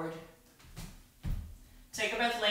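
Bare feet thud softly on a mat.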